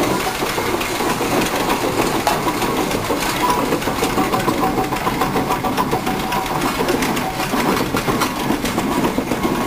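A steam traction engine chugs and rumbles past close by.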